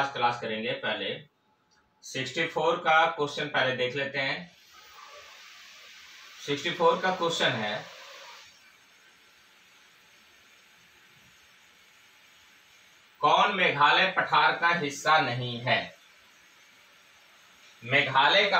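A man lectures calmly, close to a microphone.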